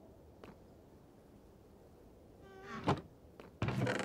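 A wooden chest thuds shut.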